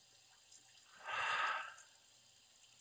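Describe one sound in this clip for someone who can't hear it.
A man sighs heavily.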